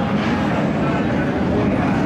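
A stock car engine rumbles at low speed.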